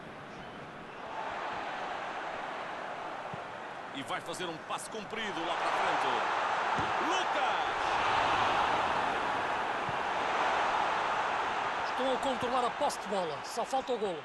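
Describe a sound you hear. A stadium crowd roars and cheers, swelling louder.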